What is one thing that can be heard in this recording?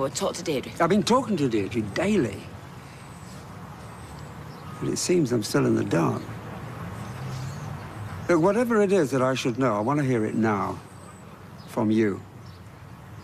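An elderly man speaks firmly close by.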